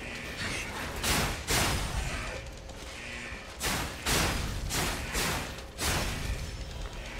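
Metal blades clash and strike in quick hits.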